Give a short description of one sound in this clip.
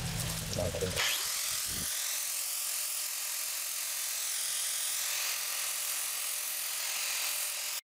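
A hand-held grinder whirs steadily, grinding metal.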